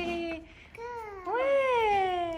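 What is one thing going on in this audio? A toddler babbles, close by.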